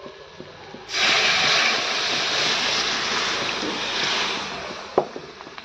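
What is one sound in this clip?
Water pours into a hot pan and sizzles loudly.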